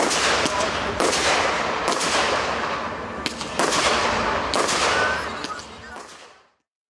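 Fireworks crackle and hiss after each burst.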